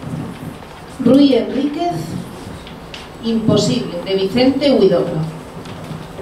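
A young woman speaks clearly into a microphone, heard over a loudspeaker.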